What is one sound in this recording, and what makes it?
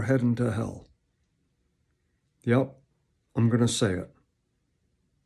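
A middle-aged man speaks calmly and close to the microphone, in short bursts.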